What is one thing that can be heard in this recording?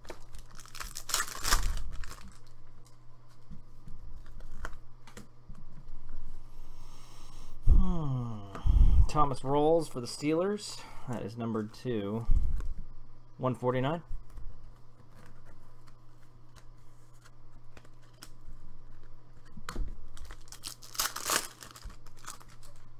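A foil wrapper crinkles and tears close by.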